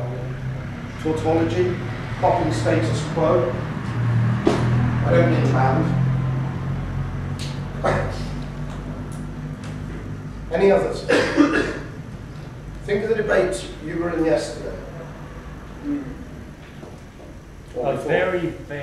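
A man speaks to a group, pausing now and then.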